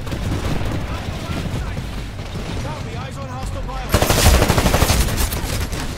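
A gun fires rapid shots close by.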